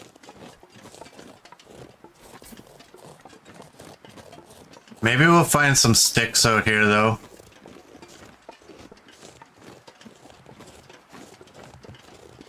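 Footsteps crunch through the snow.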